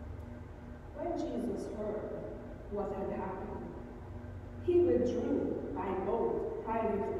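A woman reads aloud through a microphone in a large hall.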